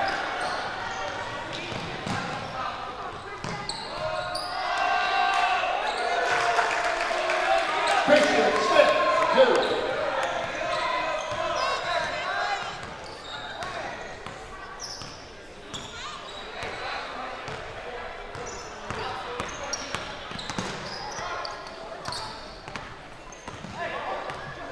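Sneakers squeak sharply on a wooden court.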